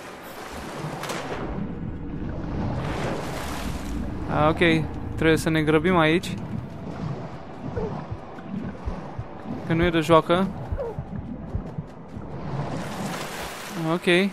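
Water swishes as a swimmer strokes underwater.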